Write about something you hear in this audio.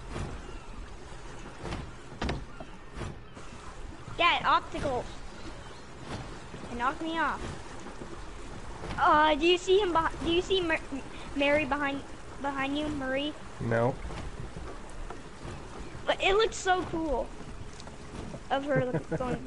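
Water laps gently against a drifting wooden raft.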